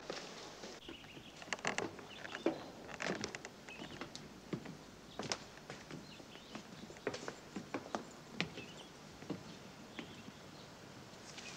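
Boots step on stone paving.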